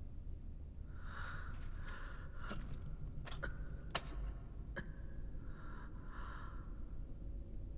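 A young man groans and pants in pain close by.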